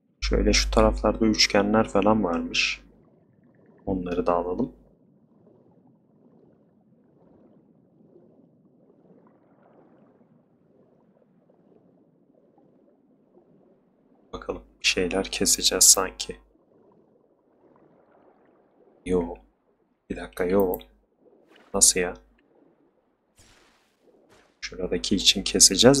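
A swimmer moves through water with soft swishing strokes.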